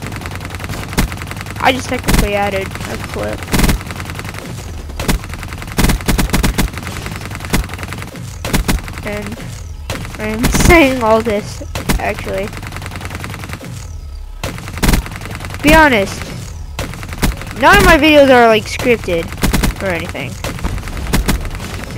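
Heavy gunfire rattles in short bursts.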